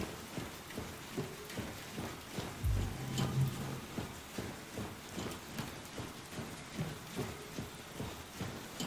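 Heavy footsteps thud steadily up metal stairs.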